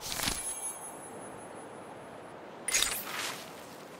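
A game interface plays a short chime as a notice pops up.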